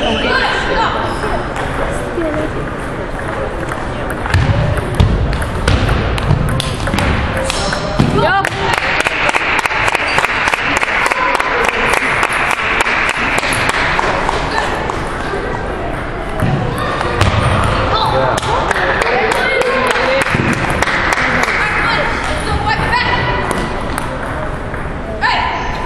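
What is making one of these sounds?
The room echoes like a large hall.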